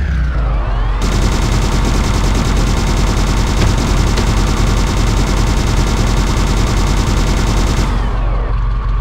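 A machine gun fires in a rapid, continuous burst.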